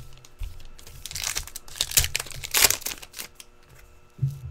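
A plastic card sleeve crinkles.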